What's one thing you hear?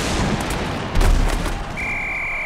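Heavy bodies crash together with a loud thud.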